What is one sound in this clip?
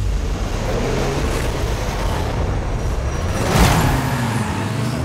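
A car rushes past with a whoosh.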